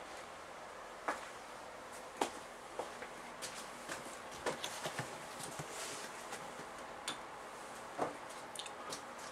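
A book rustles and bumps as it is handled.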